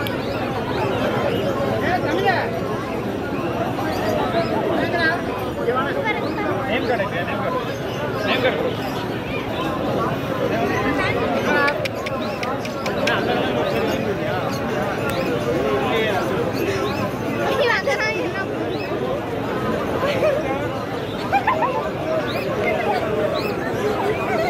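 A crowd of men and women talks all around outdoors.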